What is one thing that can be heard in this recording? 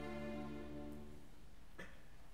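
A choir sings a final held chord that fades away.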